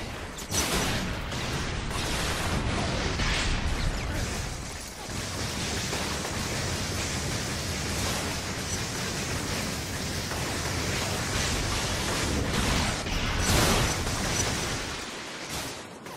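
Electric blasts crackle and zap in rapid bursts.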